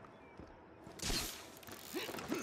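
A grappling launcher fires with a sharp bang.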